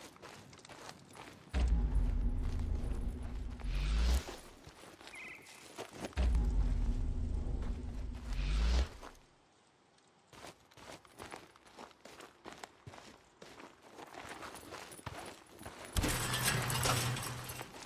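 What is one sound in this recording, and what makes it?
Footsteps crunch over dirt and grass.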